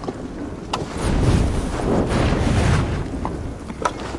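Flames burst up with a loud roar and crackle.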